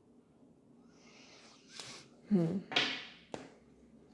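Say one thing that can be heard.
Cards slide and rustle across a cloth.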